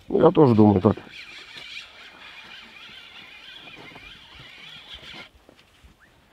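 A fishing reel's line whirs as a fish pulls.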